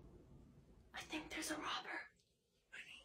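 A young woman speaks quietly and nervously close by.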